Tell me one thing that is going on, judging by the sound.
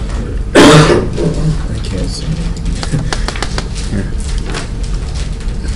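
Large sheets of paper rustle and crackle.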